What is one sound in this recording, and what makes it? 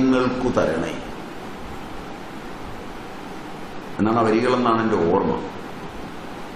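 An elderly man speaks into a microphone in short bursts with long pauses.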